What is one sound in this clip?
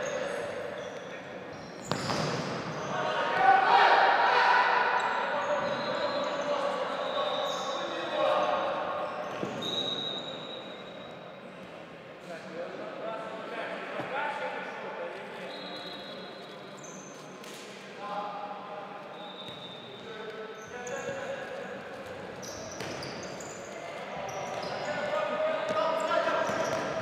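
Sneakers squeak sharply on the hall floor.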